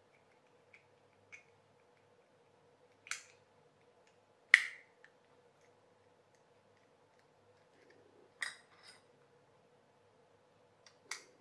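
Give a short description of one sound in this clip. Plastic parts of a clockwork toy mechanism click and knock as they are handled.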